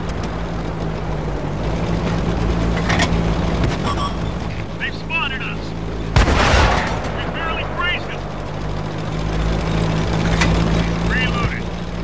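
A tank's tracks clatter over the ground.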